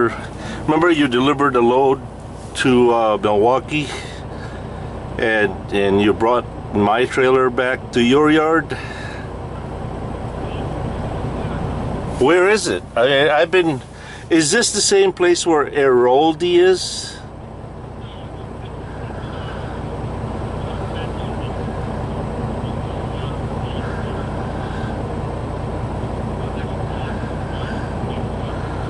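A vehicle engine hums steadily while driving.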